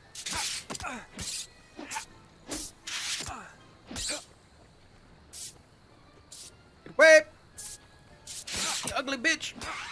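Sharp blows land repeatedly on a giant beetle.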